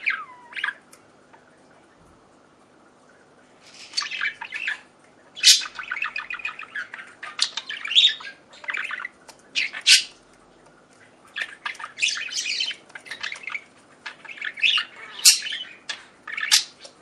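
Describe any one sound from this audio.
Budgies chirp and warble in quick, bright bursts, close by.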